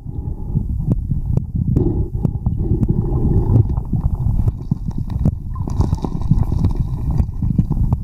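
Water churns and rumbles heavily, heard from underwater.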